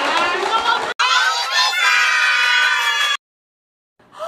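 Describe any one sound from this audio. A large group of men and women cheers and shouts excitedly.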